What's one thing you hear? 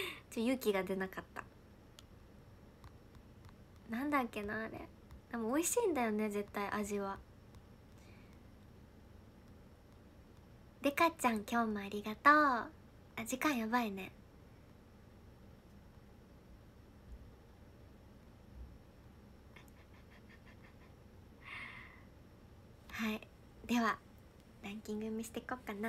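A young woman speaks cheerfully and softly into a nearby microphone, with pauses.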